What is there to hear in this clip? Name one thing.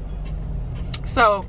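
A young woman speaks close by, casually.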